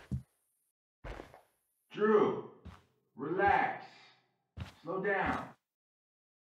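A young woman speaks, close by.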